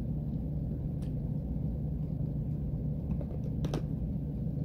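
A woman crunches a cornstarch chunk close to the microphone.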